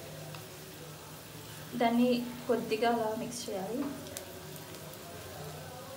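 Chopsticks stir and scrape in a frying pan.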